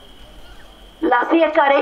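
A man chants loudly through a microphone.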